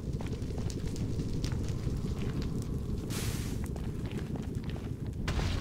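Fire crackles and roars steadily.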